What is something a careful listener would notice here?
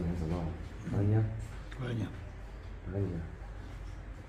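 An elderly man speaks briefly nearby.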